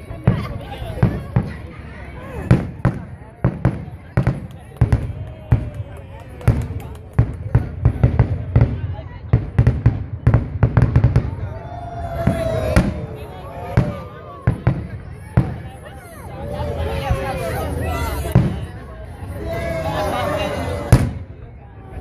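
Fireworks bang and crackle in the distance.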